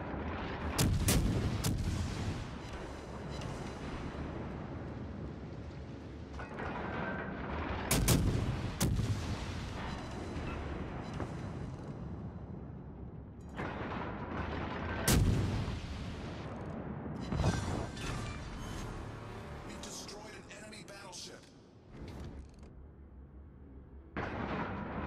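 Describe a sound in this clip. Shells explode with deep rumbling booms.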